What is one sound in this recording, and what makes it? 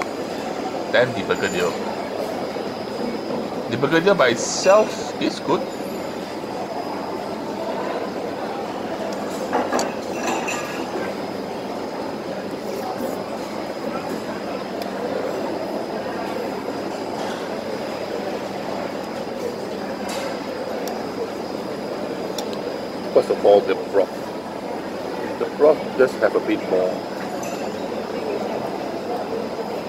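A man chews with smacking sounds close by.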